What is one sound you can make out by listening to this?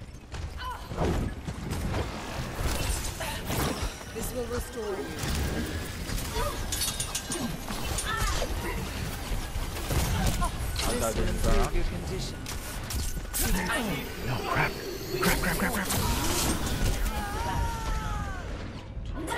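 Game weapons fire in rapid bursts with zaps and impacts.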